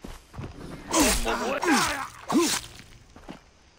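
A man cries out and groans in pain.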